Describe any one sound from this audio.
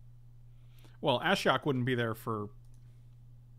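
A man speaks briefly with animation, close to a microphone.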